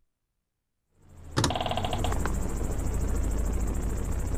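Calm game music plays for a map.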